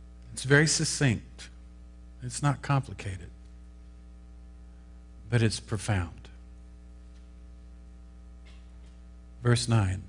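An older man speaks calmly into a microphone, in short phrases with long pauses.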